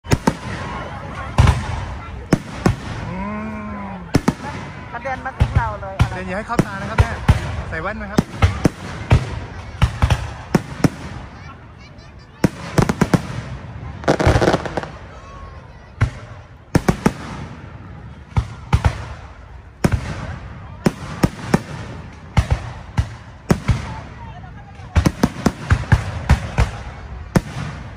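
Fireworks crackle and fizz in the sky.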